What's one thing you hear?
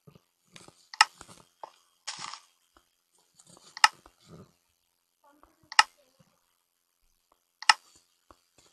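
Short game clicks sound as menus open and close.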